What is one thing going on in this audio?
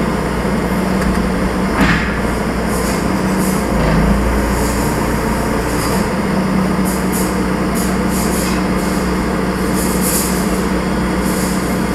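Metal clanks and rattles now and then.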